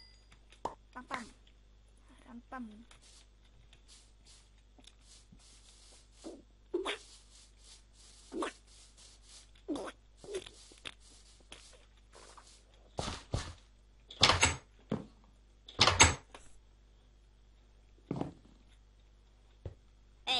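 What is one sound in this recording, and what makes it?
A young person speaks in short bursts close to a microphone.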